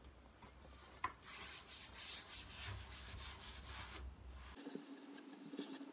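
Objects knock and rustle against a shelf.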